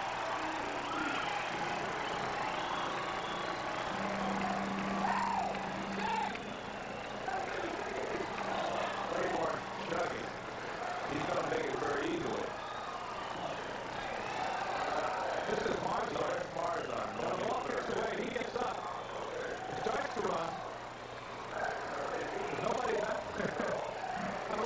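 A large stadium crowd cheers and roars.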